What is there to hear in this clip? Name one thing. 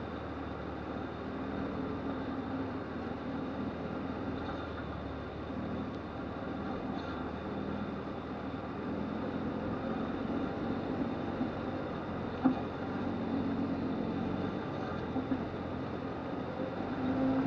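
An engine rumbles steadily at low speed.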